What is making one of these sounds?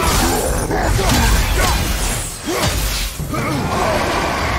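A burst of fire roars.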